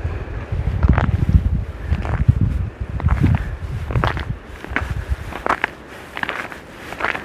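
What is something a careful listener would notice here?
Footsteps crunch through fresh snow.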